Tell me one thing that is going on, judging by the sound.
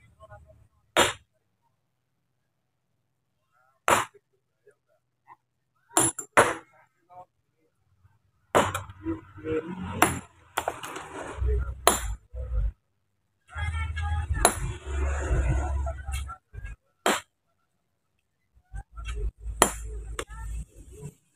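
A sledgehammer strikes rock with sharp, ringing cracks, outdoors.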